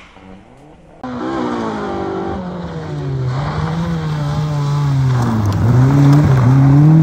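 A second rally car engine approaches, revving loudly and shifting gears.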